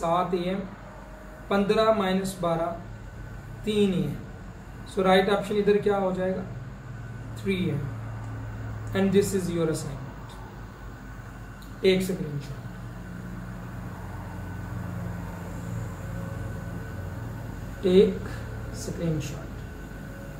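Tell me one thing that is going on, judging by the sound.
A young man speaks calmly and explains, close to a microphone.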